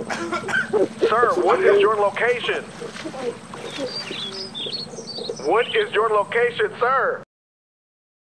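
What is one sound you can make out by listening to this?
A child splashes while swimming in water.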